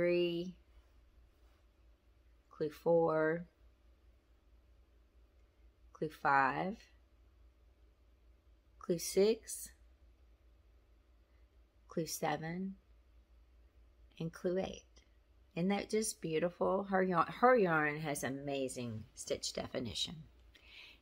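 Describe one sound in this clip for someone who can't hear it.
A middle-aged woman speaks calmly and warmly into a nearby microphone, in short phrases with pauses.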